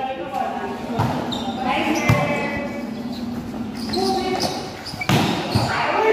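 A volleyball is hit with sharp smacks.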